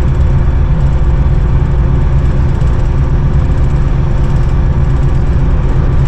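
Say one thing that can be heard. Train wheels clatter along the rails.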